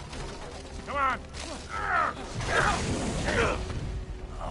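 A man shouts in a strained voice.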